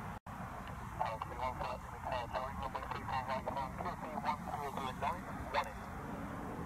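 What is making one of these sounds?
A bird calls repeatedly as it flies overhead.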